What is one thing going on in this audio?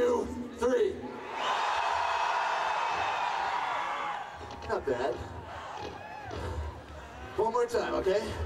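Men in a crowd shout loudly close by.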